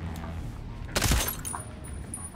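A silenced gun fires a quick burst.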